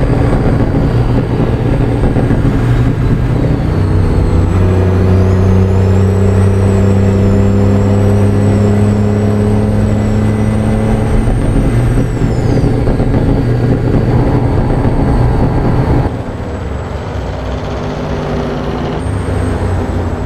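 A truck engine drones steadily while driving at speed.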